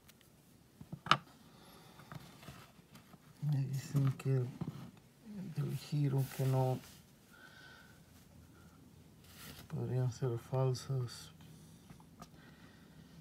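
Metal coins clink softly against each other.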